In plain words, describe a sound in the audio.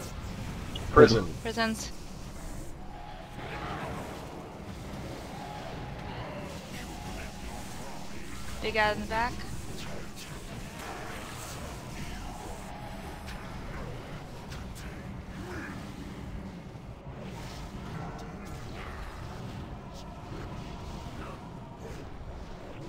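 Magic spells and weapon clashes ring out in a busy fantasy battle.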